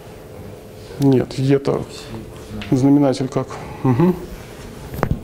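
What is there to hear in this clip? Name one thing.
A second young man answers in short bursts.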